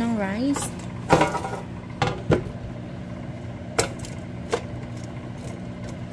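Frozen nuggets knock and scrape against a metal basket as a hand shifts them.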